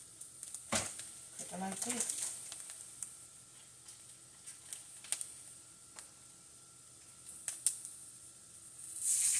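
Plastic packaging crinkles and rustles in someone's hands.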